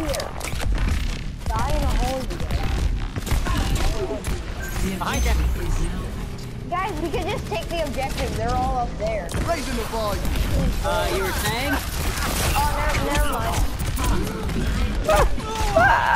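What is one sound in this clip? Gunfire from a video game weapon crackles in quick bursts.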